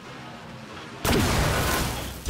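An explosion bursts loudly.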